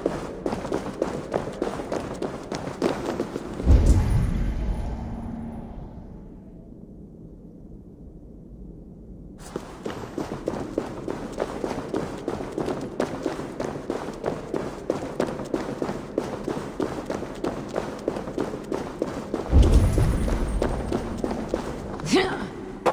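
Footsteps crunch steadily on stone and gravel.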